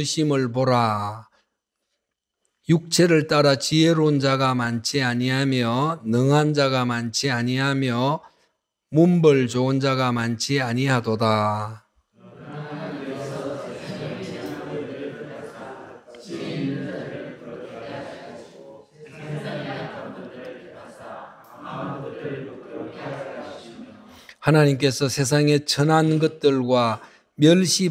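An elderly man preaches through a microphone, speaking slowly and with emphasis, in an echoing hall.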